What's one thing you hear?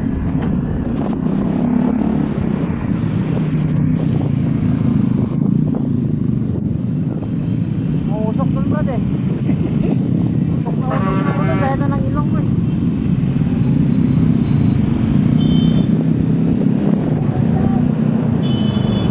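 Motorcycle engines hum steadily close by.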